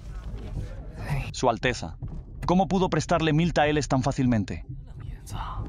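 A young man speaks playfully.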